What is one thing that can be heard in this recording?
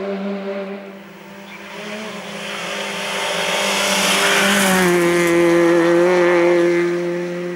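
A rally car engine revs hard as the car approaches and speeds past.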